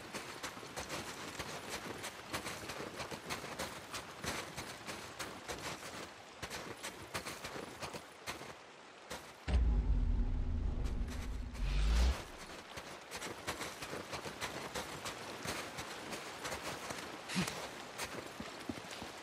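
Footsteps crunch quickly through snow.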